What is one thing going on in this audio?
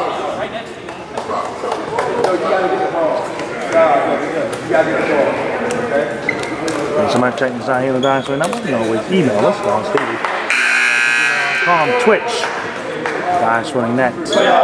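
A crowd of children and adults chatter and shout in a large echoing hall.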